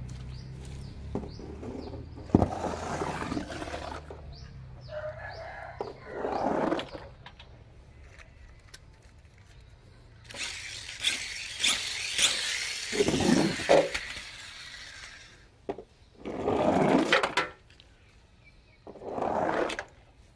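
Small toys splash into a basin of water.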